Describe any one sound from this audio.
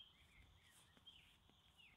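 A man's footsteps brush through grass.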